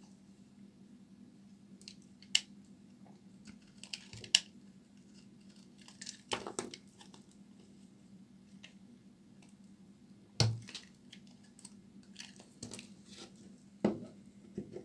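Soap chunks crunch and crumble between fingers.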